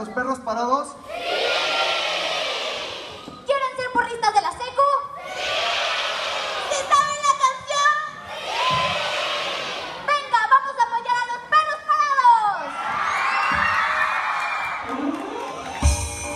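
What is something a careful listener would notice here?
A crowd cheers and screams loudly.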